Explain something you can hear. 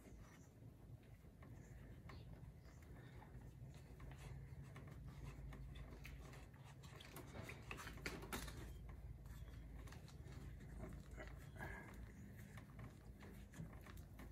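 Hands twist and rub on a rubber handlebar grip.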